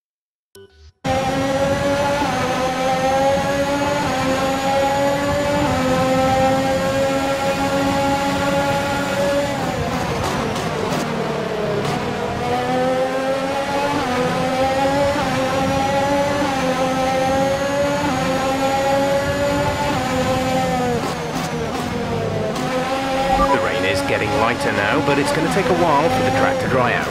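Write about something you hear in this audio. A racing car engine screams at high revs, rising and dropping in pitch as it shifts gears.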